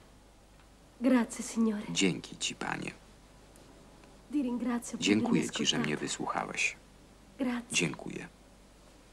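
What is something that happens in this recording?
A woman reads aloud clearly, close by.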